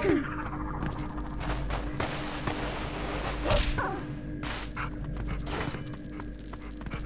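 A wolf's paws patter quickly across a stone floor.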